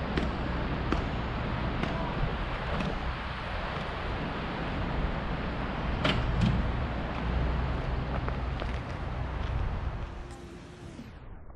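Wind rustles through trees outdoors.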